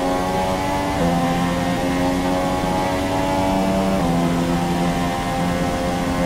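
Rain spray hisses steadily under the tyres.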